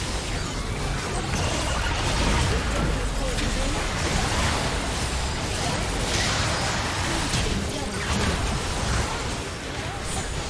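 Magic blasts, whooshes and impacts crackle in a fast video game battle.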